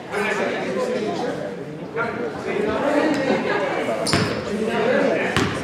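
Young people shout and call out in a large echoing gym.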